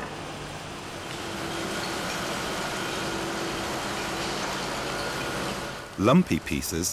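An excavator engine hums steadily.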